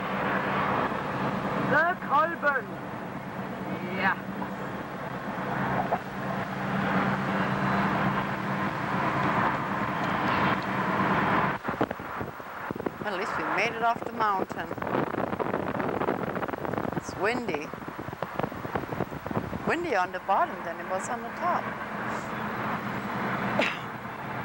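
Tyres roll along a road.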